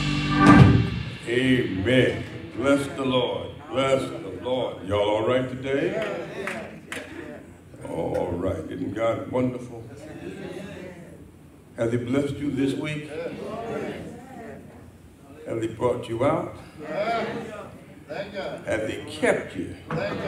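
A man speaks with animation into a microphone in a reverberant hall.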